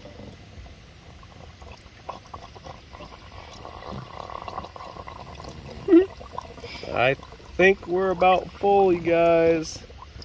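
Fuel gurgles and splashes as it pours into a filler neck.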